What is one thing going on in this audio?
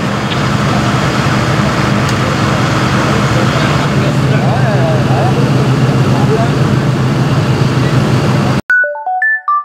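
A fire engine's motor idles with a steady low rumble.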